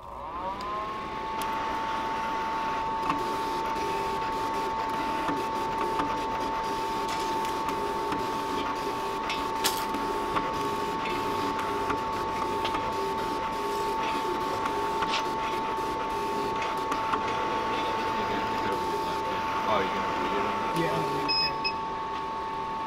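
A cutting blade ticks and clicks against the sheet.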